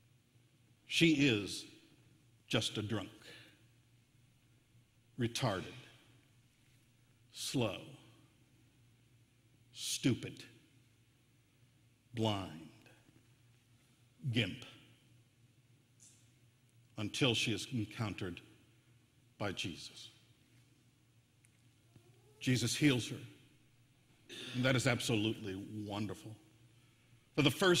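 A middle-aged man preaches through a microphone in short phrases with pauses, in a reverberant hall.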